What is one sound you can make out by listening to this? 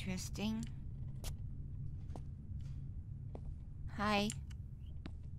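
A young woman makes short drawn-out exclamations close to a microphone.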